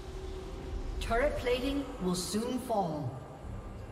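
Electronic game sound effects whoosh and chime.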